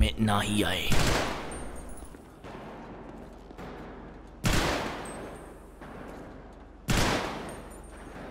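A gun fires single loud shots with a short echo.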